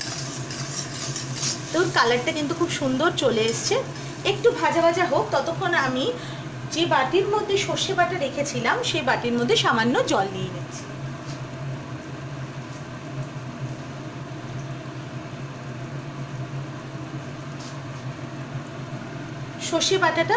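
Batter sizzles softly in a hot pan.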